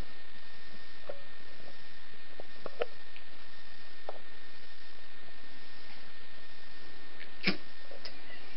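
Dogs snap their jaws softly while play-biting.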